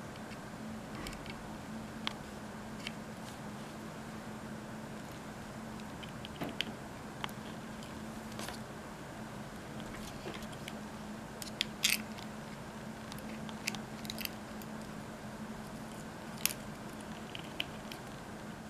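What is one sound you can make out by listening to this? Wire ends click softly as they are pushed into a plastic board.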